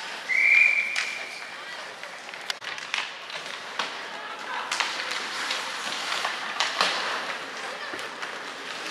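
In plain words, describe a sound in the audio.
Hockey sticks clack against a puck, echoing in a large hall.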